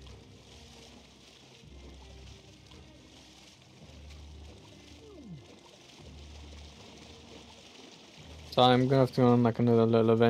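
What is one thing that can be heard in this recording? Water splashes softly as a swimmer paddles through it.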